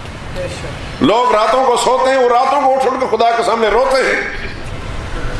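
An older man speaks with animation into a microphone, echoing in a large hall.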